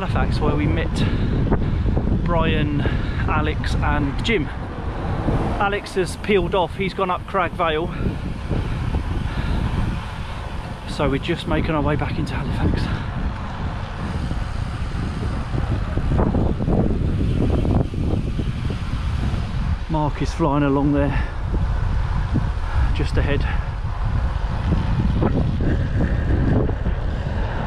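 Wind buffets the microphone steadily.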